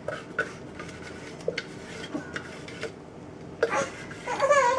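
A plastic container is tapped by hand, knocking softly several times.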